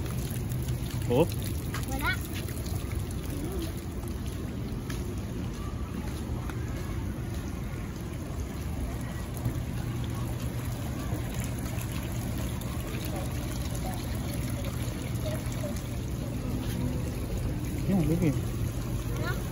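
A young boy speaks briefly nearby.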